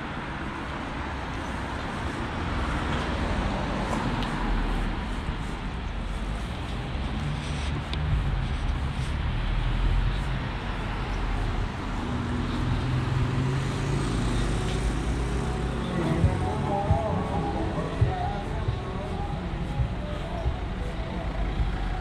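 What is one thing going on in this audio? A car engine hums as the car moves slowly along the street.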